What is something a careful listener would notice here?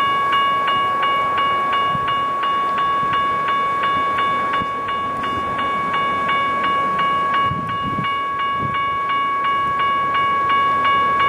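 A train horn blows loudly and steadily.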